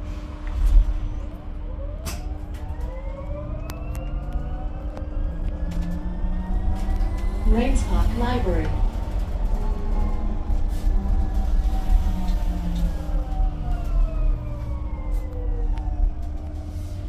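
A bus motor whines, rising in pitch as the bus speeds up and falling as it slows.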